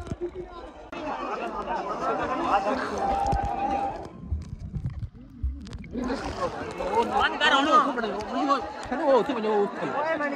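A crowd of people shout and chatter over the water outdoors.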